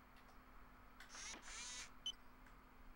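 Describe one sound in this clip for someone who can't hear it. A brief mechanical whirr sounds as a robotic arm switches.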